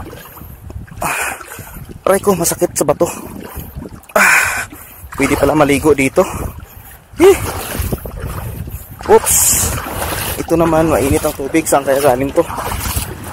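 Shallow water trickles over stones in a stream.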